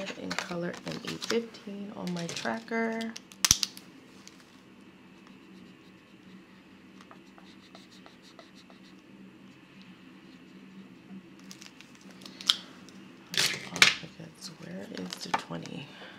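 A stiff sheet of plastic-coated paper clicks and rattles as it is handled.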